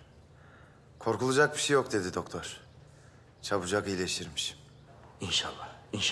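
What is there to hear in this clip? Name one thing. An older man speaks calmly, close by.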